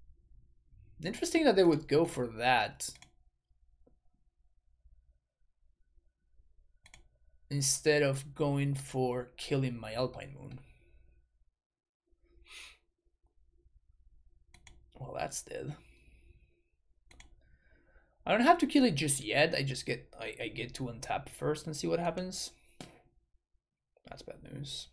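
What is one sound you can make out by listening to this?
A young man talks calmly into a close microphone, with pauses.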